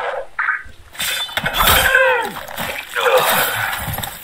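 A heavy blow thuds as a man is struck down.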